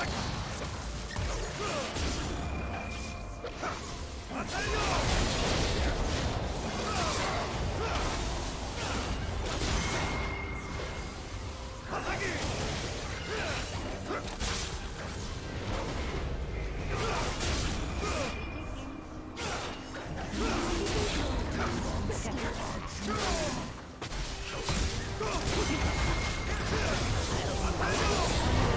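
Magic blasts and whooshes crackle in quick bursts.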